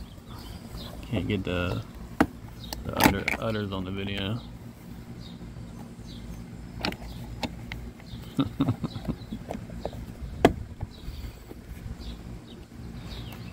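Hard plastic clicks and knocks against a car roof.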